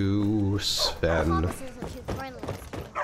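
A dog growls close by.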